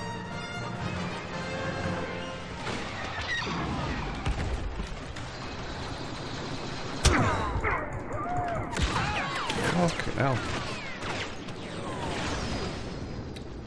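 Laser blasts and explosions go off in a game's battle.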